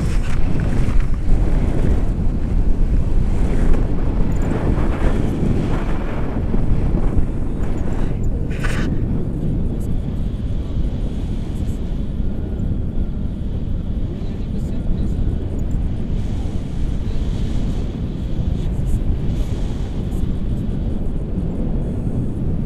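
Strong wind rushes and buffets loudly past close by.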